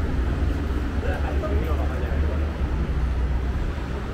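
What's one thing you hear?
Young people chat nearby in passing.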